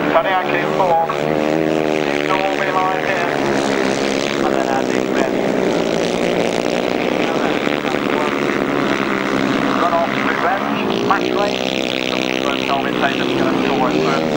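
Motorcycle engines roar and rev loudly as they race past.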